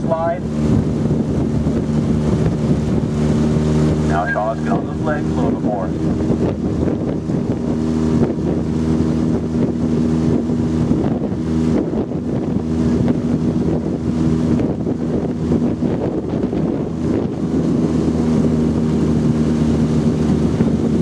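Oars splash and pull through water in a steady rhythm.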